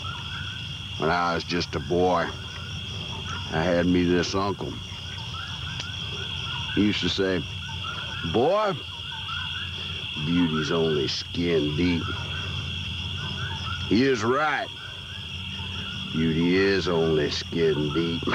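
A man speaks calmly in a low voice, close by, with pauses.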